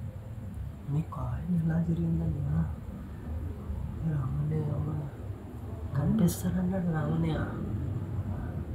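A man speaks quietly nearby.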